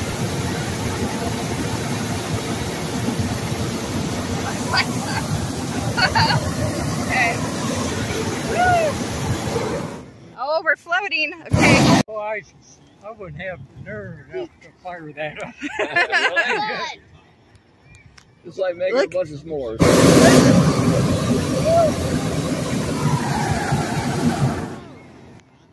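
A gas burner roars loudly and steadily overhead.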